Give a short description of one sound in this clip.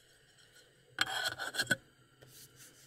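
A metal lid clatters onto a cooking pot.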